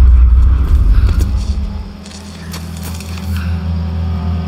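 Footsteps crunch on leaves and twigs.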